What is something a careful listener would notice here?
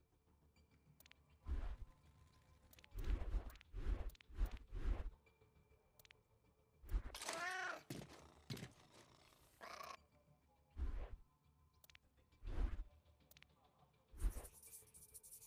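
Short menu clicks sound as a selection moves down a list.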